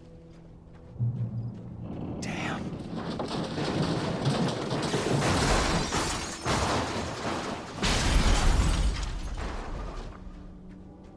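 A car crashes and scrapes loudly against rock.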